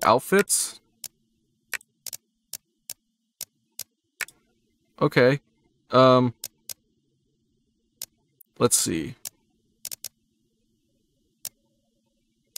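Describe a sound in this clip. Soft menu clicks tick as selections change.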